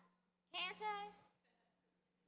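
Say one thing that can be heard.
A girl speaks a few words through a microphone in a large hall.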